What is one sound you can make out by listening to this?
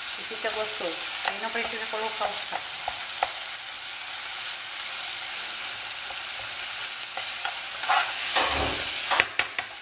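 A metal spoon scrapes and stirs food in a pan.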